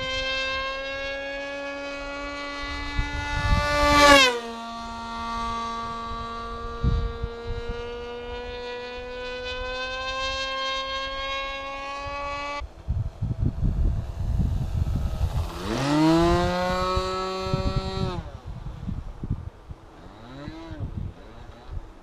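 A model airplane's engine whines overhead, its pitch rising and falling as it passes.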